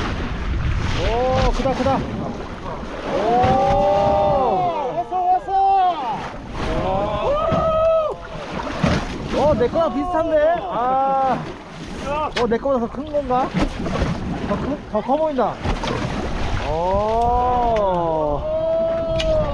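A man shouts and calls out excitedly nearby.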